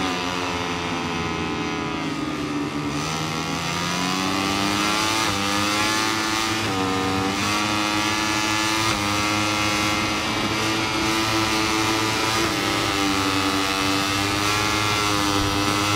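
A motorcycle engine screams at high revs, its pitch rising and falling through gear changes.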